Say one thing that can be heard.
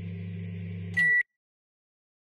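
A game menu gives a short, sharp beep as an option is chosen.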